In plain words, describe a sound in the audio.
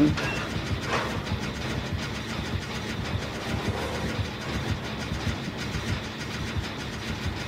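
Metal parts clatter and click softly as a machine is tinkered with.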